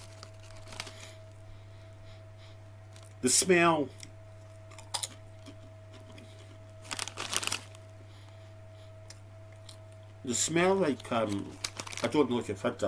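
A plastic snack bag crinkles and rustles.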